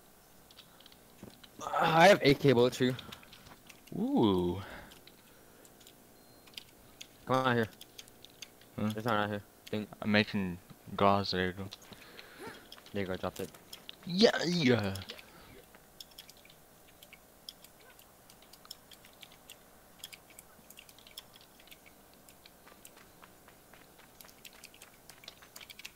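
Footsteps patter lightly on hard ground.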